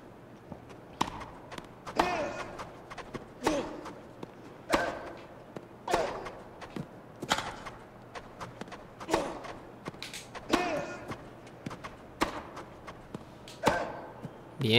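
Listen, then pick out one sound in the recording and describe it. A tennis racket strikes a ball back and forth in a steady rally.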